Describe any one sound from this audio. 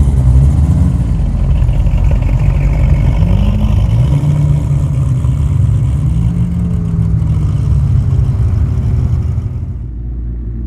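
A car engine rumbles as a car rolls slowly across grass.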